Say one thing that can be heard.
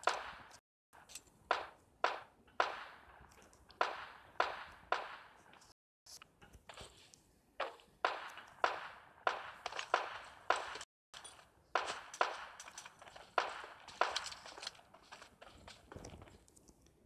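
Footsteps clang on metal roofs.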